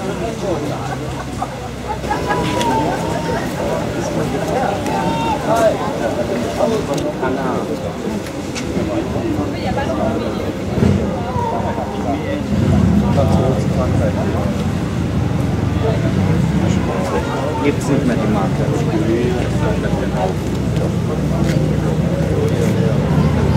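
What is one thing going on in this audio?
A crowd of people chatter outdoors in the background.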